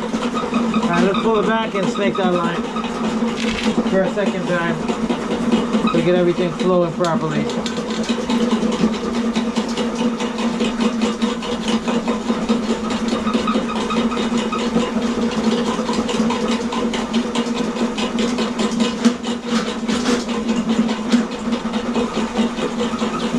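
Dirty water gurgles and churns in an open drain.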